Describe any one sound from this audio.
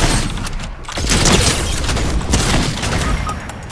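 A gun fires sharply.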